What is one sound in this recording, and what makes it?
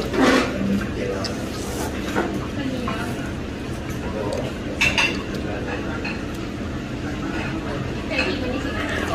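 Spoons and chopsticks clink against bowls.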